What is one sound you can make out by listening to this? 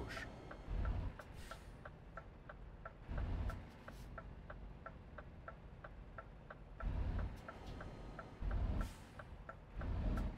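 A truck engine rumbles low and steady, swelling in short bursts.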